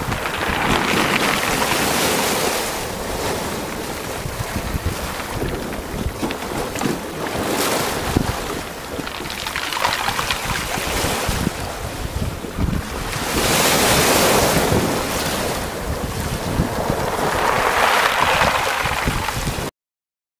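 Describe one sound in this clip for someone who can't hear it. Wind gusts over choppy water outdoors.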